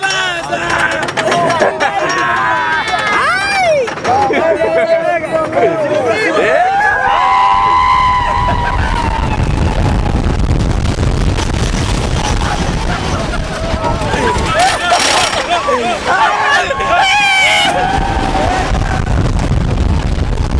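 Young men and women scream and shout with excitement close by.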